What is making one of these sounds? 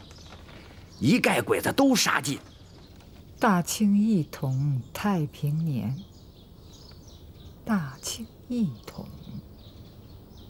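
A middle-aged woman speaks calmly and slowly, close by.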